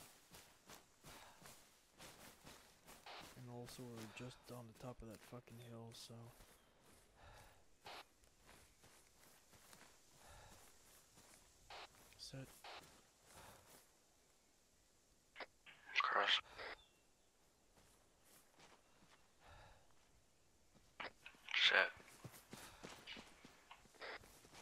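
Footsteps crunch through grass and gravel.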